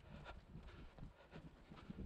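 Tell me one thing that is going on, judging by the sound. Footsteps of a runner slap on pavement close by.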